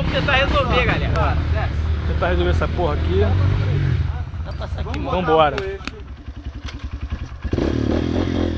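A dirt bike engine idles with a low chug.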